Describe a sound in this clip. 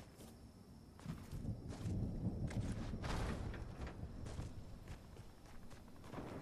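Game footsteps patter quickly on a hard surface.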